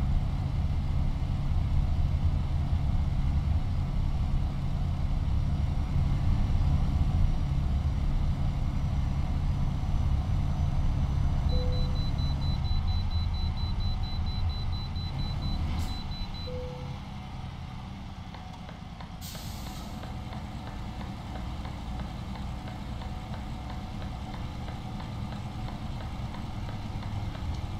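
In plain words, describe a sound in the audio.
A truck engine rumbles steadily while driving on a highway.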